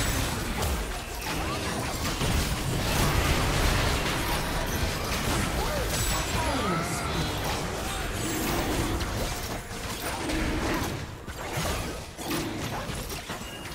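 Magic spells blast, crackle and whoosh during a fight.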